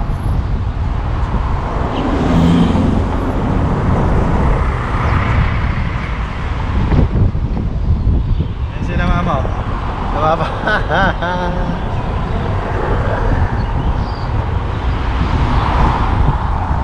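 Road noise rumbles steadily from a moving car.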